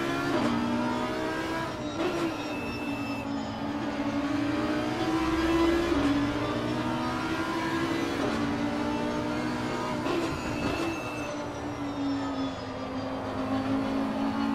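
A racing car engine roars loudly, rising and falling in pitch as it shifts gears.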